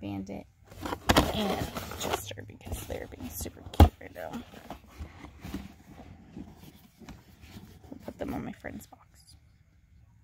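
A cardboard box rustles and scrapes as it is handled up close.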